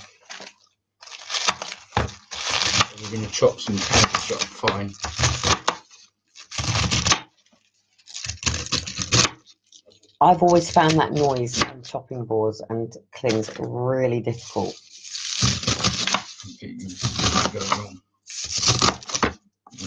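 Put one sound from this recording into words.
A knife thuds against a cutting board.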